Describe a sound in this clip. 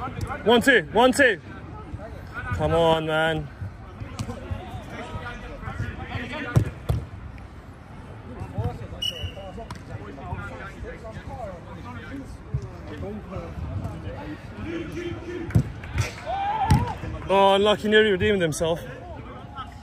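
Young men shout to each other across a football pitch outdoors.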